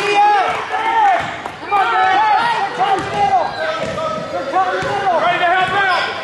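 A basketball thumps as it is dribbled on the floor.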